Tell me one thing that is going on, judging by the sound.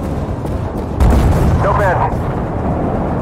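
An explosion bursts with crackling debris.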